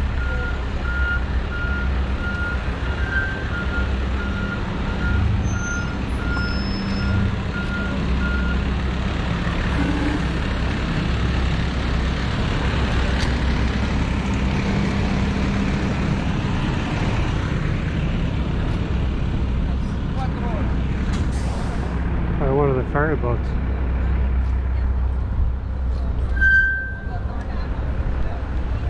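Tyres roll along pavement.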